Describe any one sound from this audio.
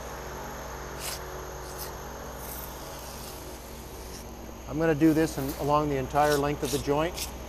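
A metal tool scrapes and clicks against a concrete floor.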